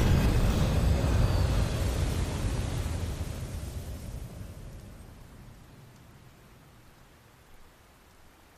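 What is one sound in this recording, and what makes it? A hovering aircraft's engines rumble deeply and fade as it flies away.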